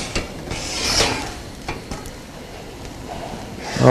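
A metal pot lid clinks as it is lifted off.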